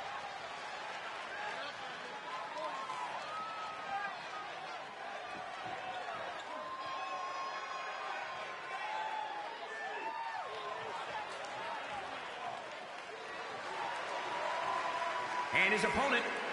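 A large crowd cheers and murmurs in a big echoing arena.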